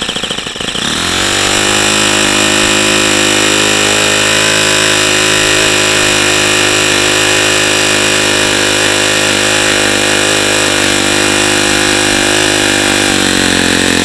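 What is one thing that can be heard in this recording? A small model engine runs with a loud, steady, high buzz.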